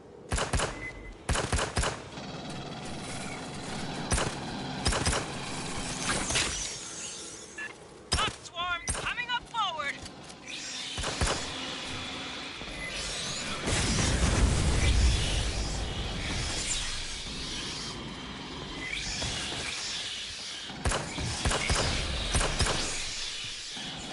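Guns fire in sharp bursts.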